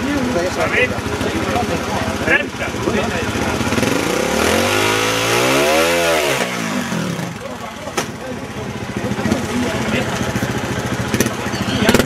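A trials motorcycle engine revs in bursts.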